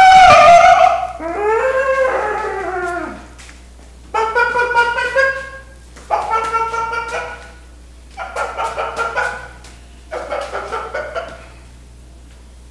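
An elderly man speaks loudly and with animation, in short bursts with pauses between them.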